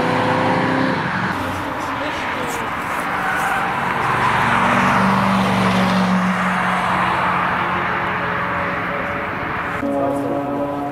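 A second car's engine revs and roars as it passes by.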